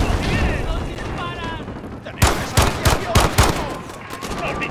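Rapid gunshots crack close by.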